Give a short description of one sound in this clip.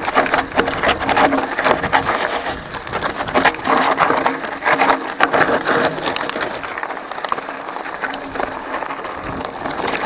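Mountain bike tyres crunch and rattle over loose rocks on a downhill trail.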